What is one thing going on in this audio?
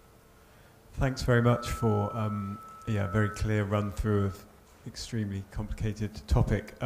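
A man speaks to an audience through a microphone in a large room.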